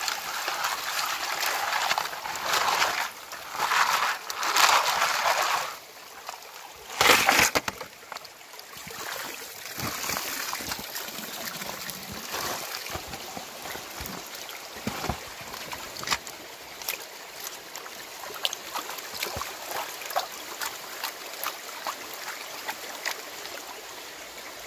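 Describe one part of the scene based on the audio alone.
Water sloshes and swirls in a pan as it is shaken in a stream.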